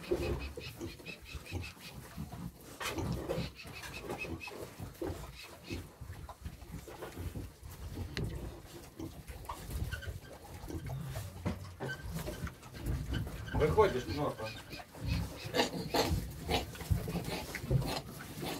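Pigs grunt and snort close by.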